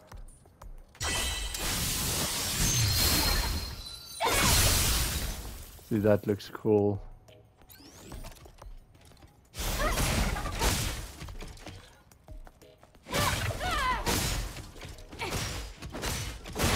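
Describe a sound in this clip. Metal blades swish and clash in a fight.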